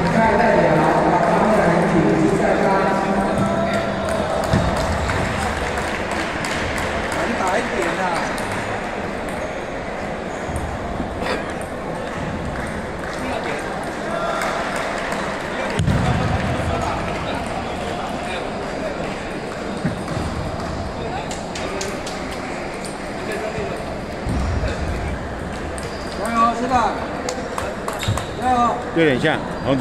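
A crowd murmurs throughout a large echoing hall.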